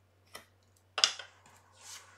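A hard plastic block is set down on a table with a knock.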